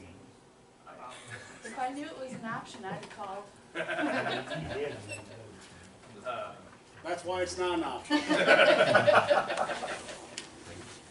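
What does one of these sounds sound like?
Adults speak in turn through microphones, heard over room loudspeakers.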